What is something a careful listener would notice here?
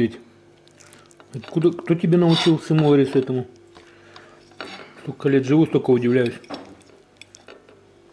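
A fork scrapes and clinks against a plate.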